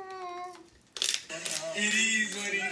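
A pepper mill grinds with a dry crunching rasp.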